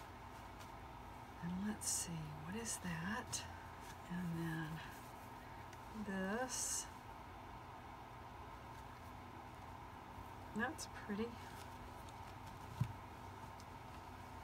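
Fabric rustles as hands handle and smooth cloth.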